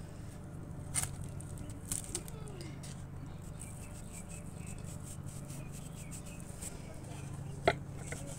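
Hands lightly pat and shift soft noodles with faint dull taps.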